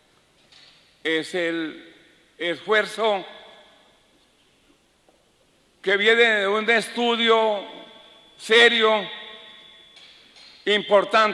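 An elderly man speaks calmly into a microphone in a reverberant room, with pauses.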